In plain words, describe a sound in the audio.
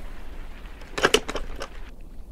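A metal latch clicks open.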